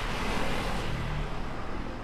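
A motor scooter rides past.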